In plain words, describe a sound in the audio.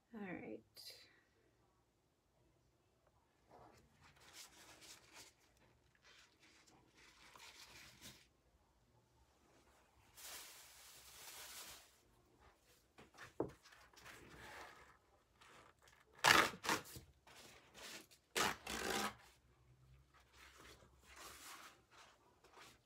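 A tool scrapes and smears thick wet paint across a smooth surface.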